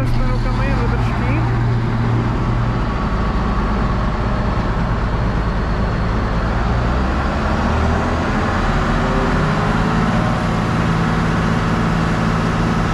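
Large tyres crunch slowly over wet gravel and dirt.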